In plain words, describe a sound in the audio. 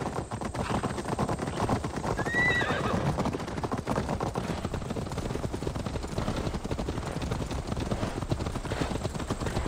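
A horse's hooves thud steadily on soft ground at a trot.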